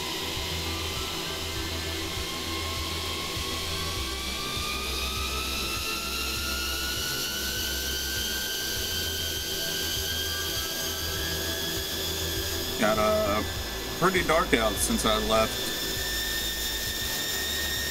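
A jet engine whines and slowly rises in pitch.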